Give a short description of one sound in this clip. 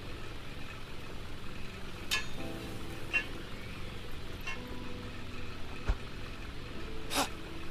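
A metal pan clanks as it is picked up and put down.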